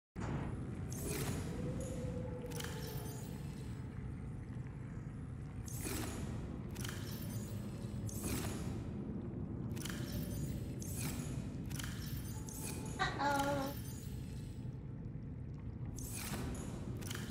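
Locker doors in a game open with soft whooshes.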